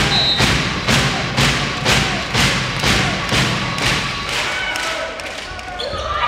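A crowd claps in a steady rhythm in a large echoing hall.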